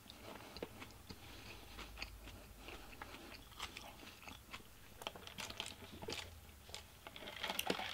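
A man slurps a drink through a straw.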